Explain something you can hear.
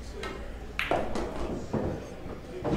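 Pool balls knock against each other and roll on the table.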